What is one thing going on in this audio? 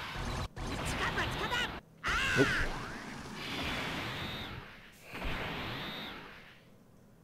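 A sharp energy whoosh rises and surges.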